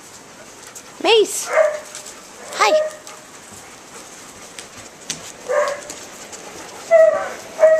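A dog lets out short, high whining yelps.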